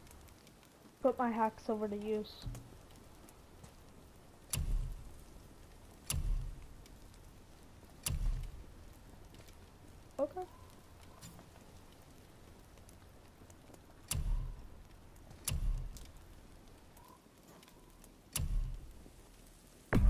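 Game menu sounds click and chime as menu panels open and close.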